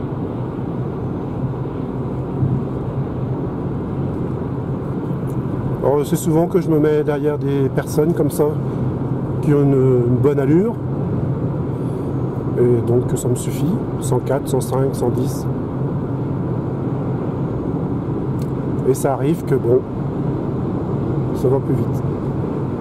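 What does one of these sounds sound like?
Tyres roar steadily on a road from inside a moving car.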